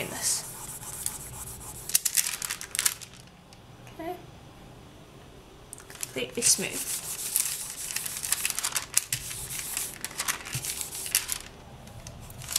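Paper rustles and crinkles as hands rub over it.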